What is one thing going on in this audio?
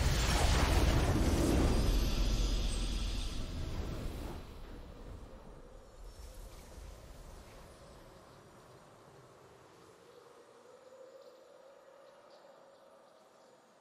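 A triumphant victory fanfare swells and slowly fades.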